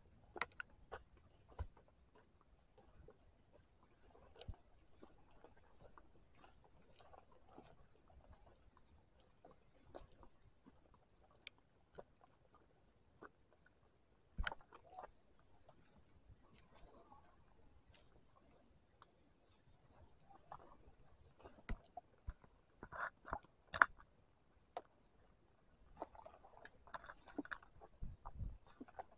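Footsteps crunch on a dry leafy dirt path.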